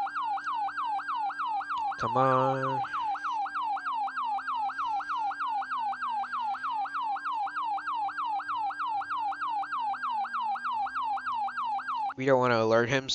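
A police siren yelps rapidly and steadily.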